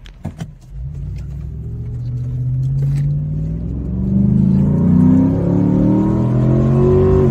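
A car engine revs up, rising in pitch.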